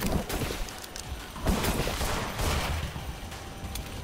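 Gunshots ring out.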